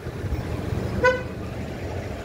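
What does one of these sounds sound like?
A vehicle horn honks briefly.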